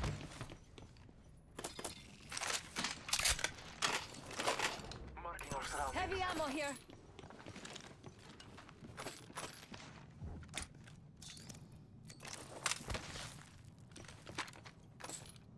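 Items are picked up with short metallic clicks.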